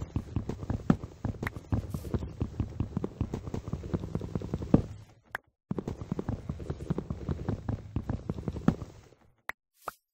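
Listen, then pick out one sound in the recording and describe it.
A video game's wood-chopping effect taps rapidly as wooden blocks are broken.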